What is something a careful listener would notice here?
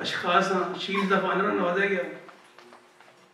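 A man speaks into a microphone over loudspeakers in an echoing hall.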